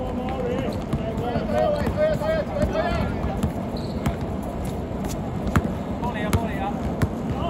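Men call out to each other loudly outdoors.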